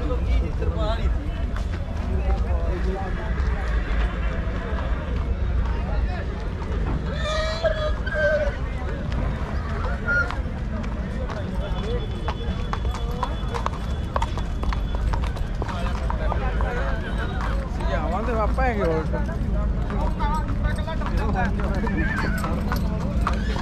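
Men talk and call out in a busy crowd nearby.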